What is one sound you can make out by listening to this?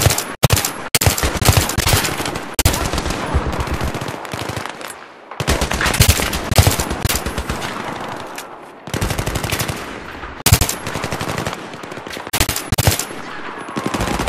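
A rifle fires rapid bursts of loud shots, close by.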